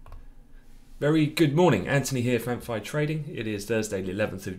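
A man speaks calmly and clearly through a microphone over an online call.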